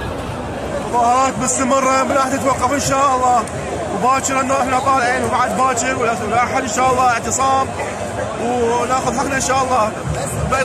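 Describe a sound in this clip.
A middle-aged man speaks forcefully and close up.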